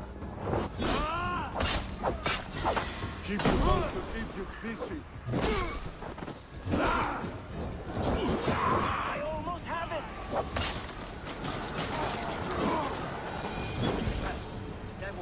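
Blades clash and strike repeatedly in a fight.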